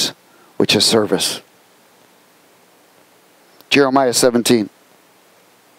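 A middle-aged man speaks with animation into a microphone, heard in short bursts with pauses.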